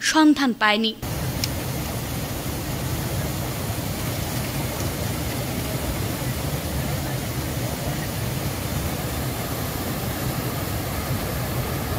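A fast, swollen river rushes and roars close by.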